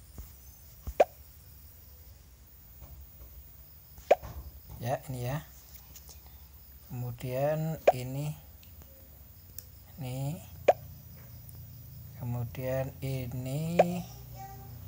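A short electronic click sounds as pieces snap into place.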